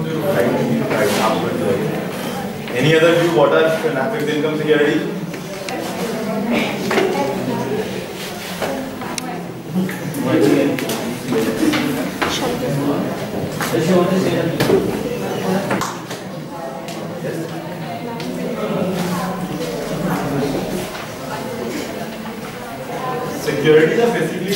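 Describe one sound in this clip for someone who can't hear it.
A man lectures in a room with some echo, speaking steadily.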